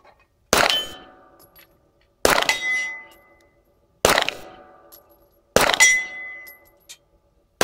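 Metal targets ring out after being struck.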